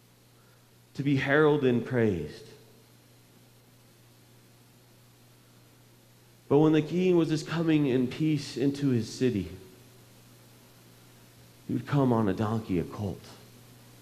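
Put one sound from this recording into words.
A man speaks calmly through a microphone in a large echoing hall, with pauses between phrases.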